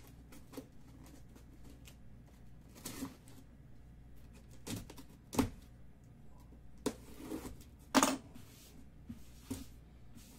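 Packing tape rips and peels off a cardboard box.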